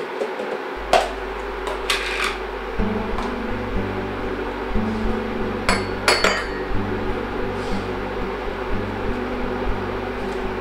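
Dishes clink on a table.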